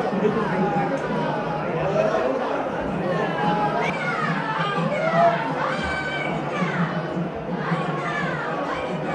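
A crowd of men chants and calls out loudly nearby.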